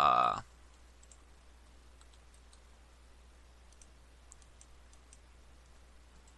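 Pickaxe blows chip at stone blocks with soft, dull clicks.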